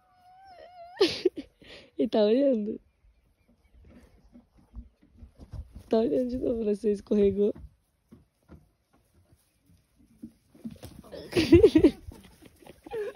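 A sheep bleats loudly, several times.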